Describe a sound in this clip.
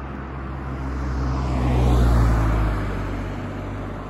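A car passes close by with a rising and fading whoosh.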